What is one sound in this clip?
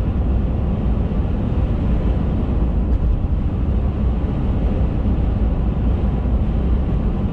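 Wind rumbles against a moving car at speed.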